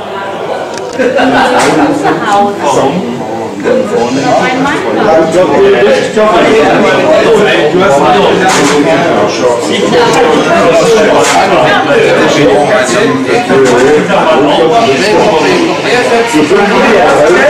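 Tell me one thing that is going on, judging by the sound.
A crowd of people talk and laugh loudly nearby.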